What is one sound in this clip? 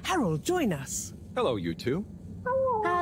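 A man calls out a cheerful greeting.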